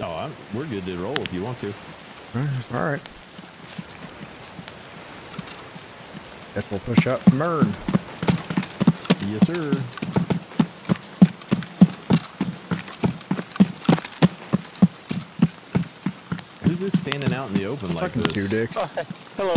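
A man talks casually and close into a microphone.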